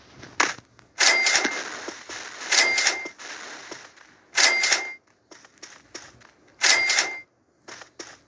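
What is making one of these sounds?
Game coins chime as they are collected, several times.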